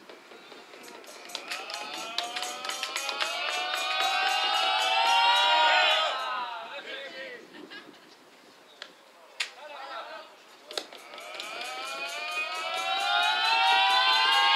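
A group of young women chant together in loud, rising cheers.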